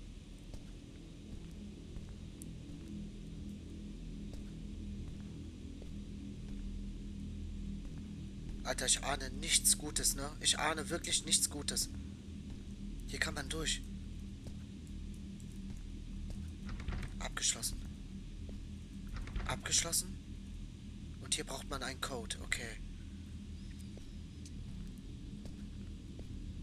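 Slow footsteps creak across a wooden floor.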